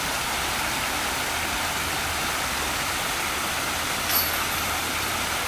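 Water splashes and rushes steadily over rocks in a creek.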